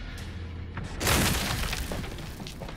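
A body lands with a heavy thud on rubble.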